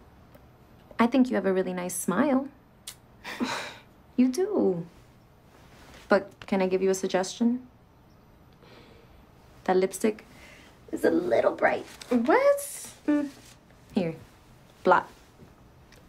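A young woman answers softly close by.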